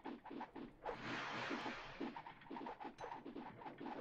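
Game creatures strike training posts with rapid knocking thuds.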